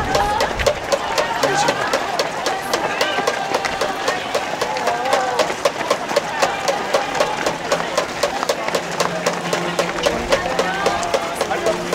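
A crowd of spectators cheers and shouts nearby.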